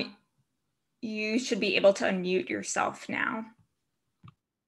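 A young woman speaks calmly over an online call.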